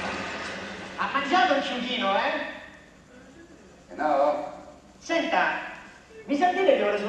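A man speaks casually through a loudspeaker in a large room.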